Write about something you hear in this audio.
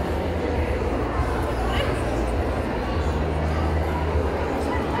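A crowd of women chatter loudly in a large echoing hall.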